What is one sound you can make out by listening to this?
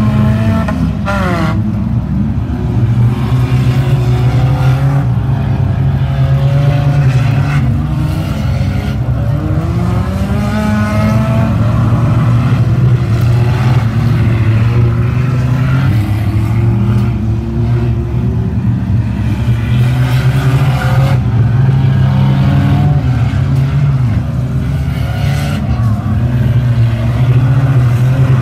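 Car engines rev and roar loudly.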